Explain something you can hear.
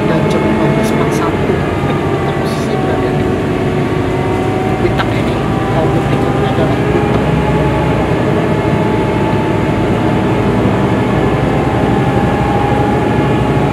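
Traffic rumbles past on a busy road.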